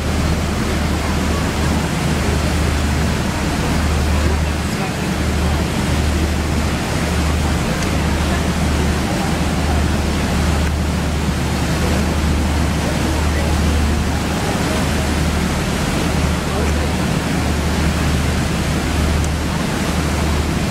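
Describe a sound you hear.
Churning water rushes and foams steadily close by.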